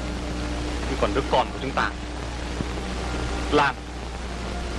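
A young man answers calmly, close by.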